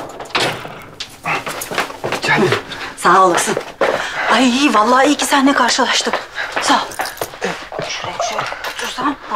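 A man talks cheerfully close by.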